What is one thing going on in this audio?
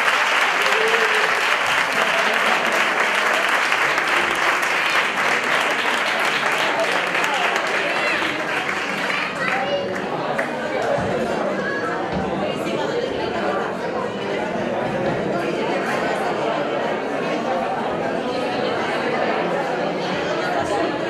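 A guitar strums along.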